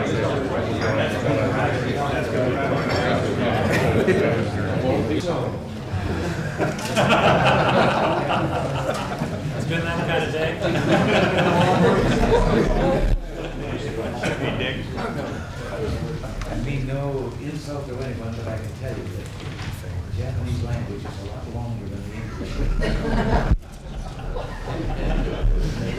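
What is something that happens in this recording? Several men laugh heartily.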